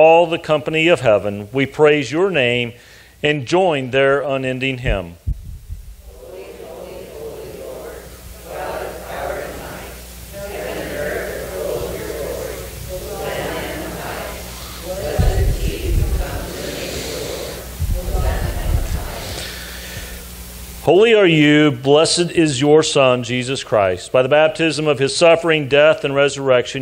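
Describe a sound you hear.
An elderly man speaks calmly through a microphone in a large echoing room.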